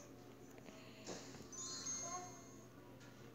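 A soft cartoon puff sounds.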